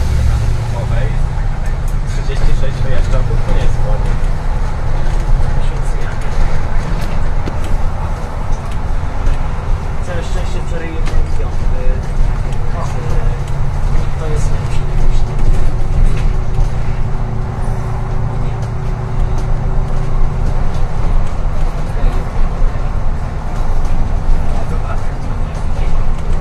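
A bus body rattles and clicks over the road.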